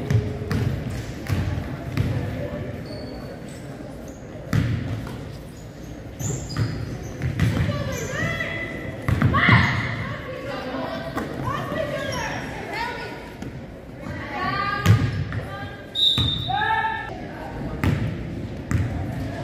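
Young women shout to each other on the court.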